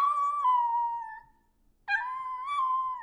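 A dog yelps and howls in short, rising cries.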